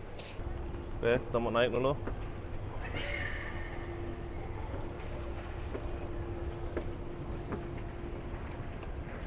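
An escalator hums steadily.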